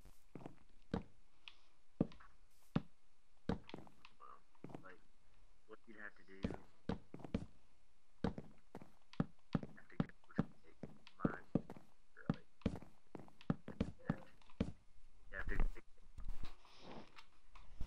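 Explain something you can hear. Wooden blocks are placed one after another with short, dull knocks.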